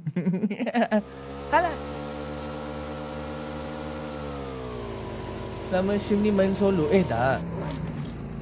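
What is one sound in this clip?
A vehicle engine hums steadily and then drops in pitch.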